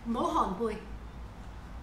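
A woman speaks briefly, close by.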